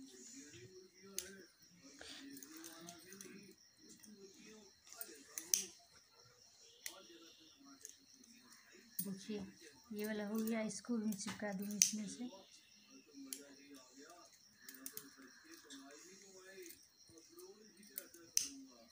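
Plastic beads click and rustle as hands handle them up close.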